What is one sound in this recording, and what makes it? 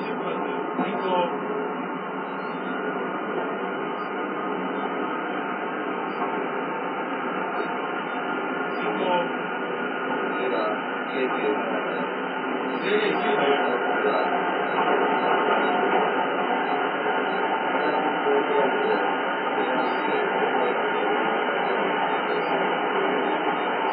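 A train rolls steadily along the tracks with a constant rumble.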